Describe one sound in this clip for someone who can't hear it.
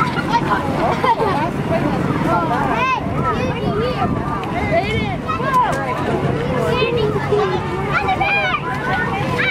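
Children shout and cheer excitedly nearby.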